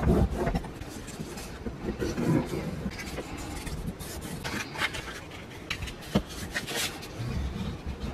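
Hands fold and crease paper with soft rustles.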